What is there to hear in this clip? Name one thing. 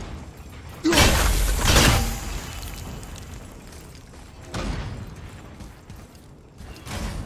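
Heavy blows smash wooden crates, which clatter apart.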